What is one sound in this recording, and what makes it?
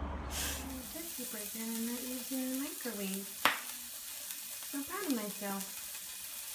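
A patty sizzles in a frying pan.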